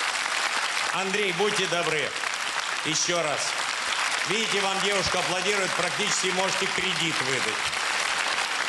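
A man talks with animation through a microphone in a large hall.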